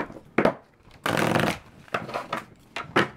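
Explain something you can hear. Cards are shuffled in the hands.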